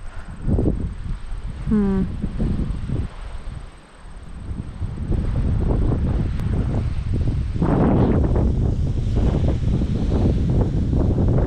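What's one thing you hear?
Strong wind buffets loudly outdoors.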